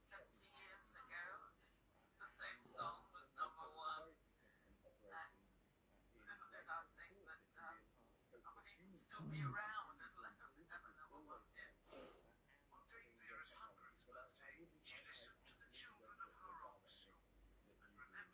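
A man speaks calmly through a television loudspeaker, heard over a remote call.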